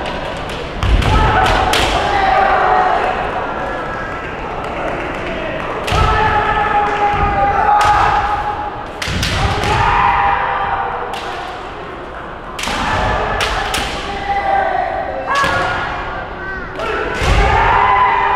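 Bamboo swords strike with sharp cracks.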